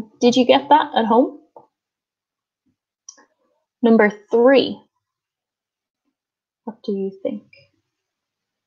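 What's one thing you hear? A woman speaks calmly and clearly into a close microphone, with pauses.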